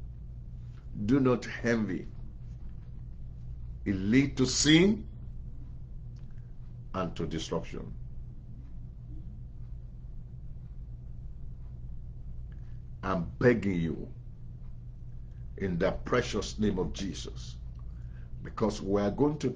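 A middle-aged man speaks calmly into a microphone, in short phrases with long pauses.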